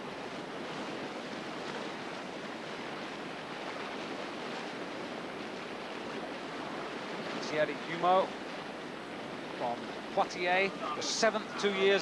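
Whitewater rushes and churns loudly.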